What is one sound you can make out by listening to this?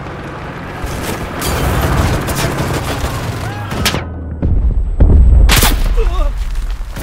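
Gunfire cracks and booms nearby.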